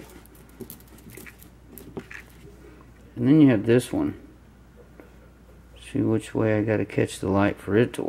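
Small items click and rustle softly between fingers.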